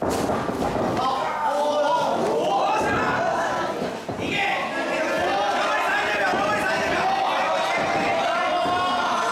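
A man shouts loudly from close by.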